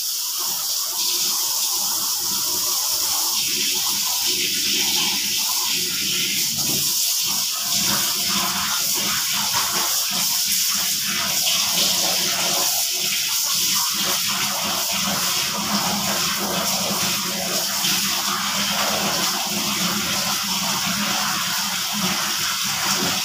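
Clothes swish and splash in a basin of water.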